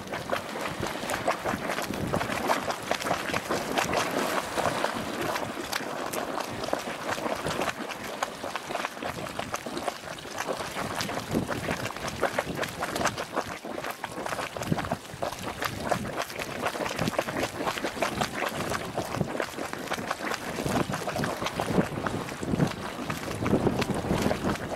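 Hot water bubbles and splashes up from a small spring.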